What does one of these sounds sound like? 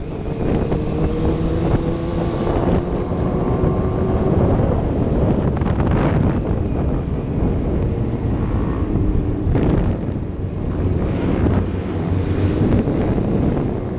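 Wind buffets loudly against a helmet.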